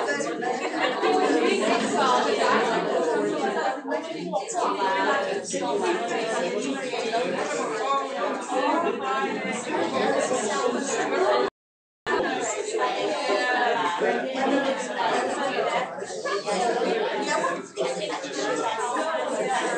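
Two women talk with each other nearby.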